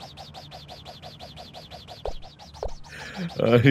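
A young man laughs breathlessly in rapid bursts close to a microphone.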